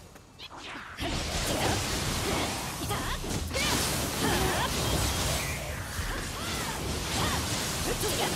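Magical bursts crackle and explode in a video game battle.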